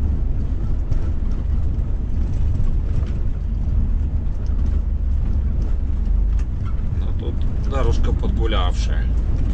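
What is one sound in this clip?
Loose parts inside a vehicle rattle and knock over a bumpy road.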